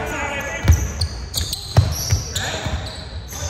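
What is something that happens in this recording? A basketball bounces with loud thuds on a wooden floor in a large echoing hall.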